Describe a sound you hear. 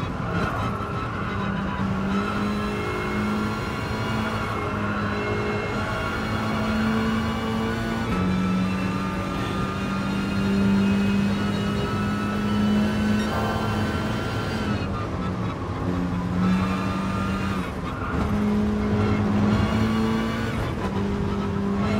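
A racing car engine roars steadily, rising and dropping in pitch as it shifts gears.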